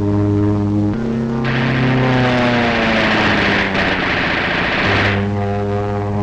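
A plane engine roars louder and drops in pitch as it dives past.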